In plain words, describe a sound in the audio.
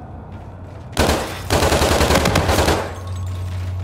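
A heavy machine gun fires a loud rapid burst.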